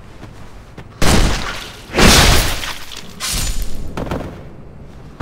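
Heavy blows thud and crash loudly.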